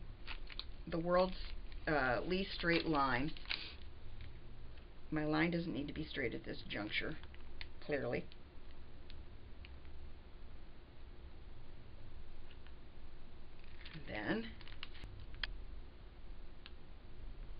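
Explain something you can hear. Stiff plastic crinkles softly as it is handled.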